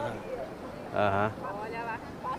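A woman calls out nearby.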